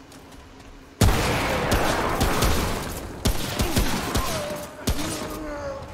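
Loud gunshots fire in rapid bursts.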